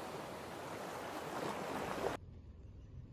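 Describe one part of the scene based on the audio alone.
Heavy waves crash and roar.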